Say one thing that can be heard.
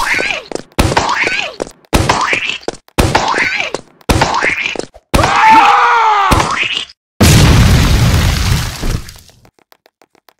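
A rocket launcher fires in a quick series of loud blasts.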